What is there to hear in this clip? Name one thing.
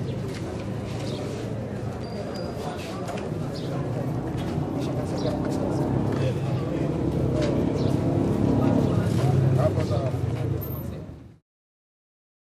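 Several men chat nearby on a busy street outdoors.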